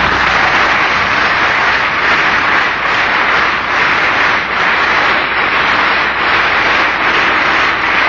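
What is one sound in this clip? A large crowd applauds steadily in an echoing hall.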